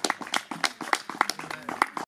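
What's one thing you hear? A woman claps her hands along to the music.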